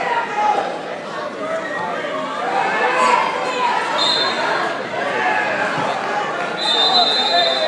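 Wrestling shoes squeak on a mat.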